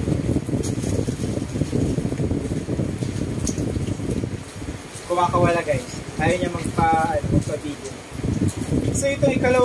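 Cardboard and paper rustle as a box is unpacked.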